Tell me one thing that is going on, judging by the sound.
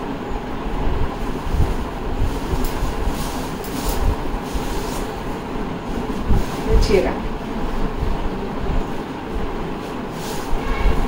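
A middle-aged woman talks calmly and steadily close by.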